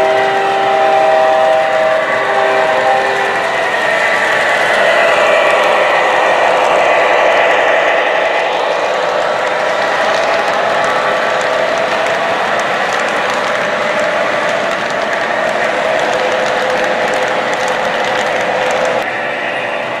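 Model train cars rumble and clatter over metal track.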